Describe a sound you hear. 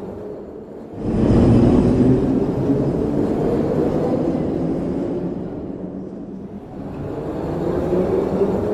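A toy train rumbles along a wooden track.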